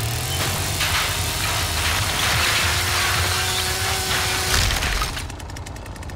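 A chainsaw roars and smashes through wood.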